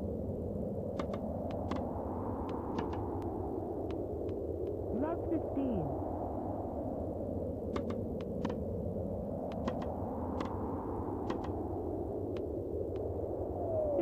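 Tennis balls are hit back and forth with sharp, clicky pops.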